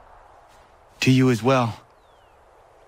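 A young man calmly answers a greeting.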